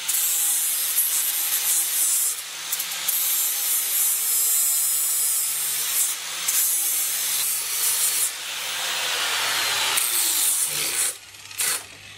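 An angle grinder screeches loudly against metal.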